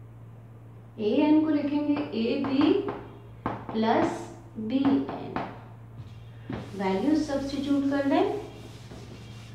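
A woman speaks calmly close by, explaining.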